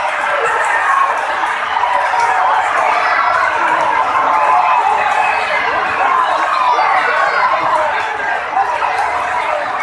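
A large crowd outdoors cheers and shouts excitedly.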